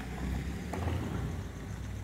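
A parking barrier arm whirs as it moves.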